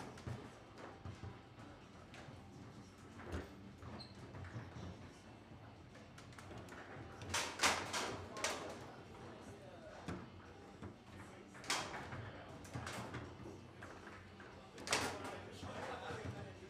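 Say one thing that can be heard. Foosball rods rattle and thump as players spin and slide them.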